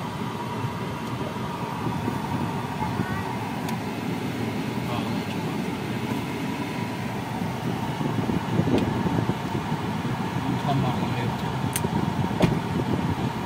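A car hums steadily with road noise while driving.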